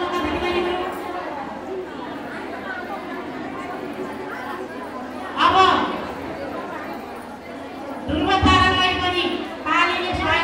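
A woman speaks animatedly through a microphone and loudspeaker in an echoing room.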